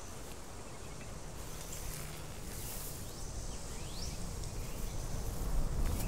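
Footsteps swish through dry grass.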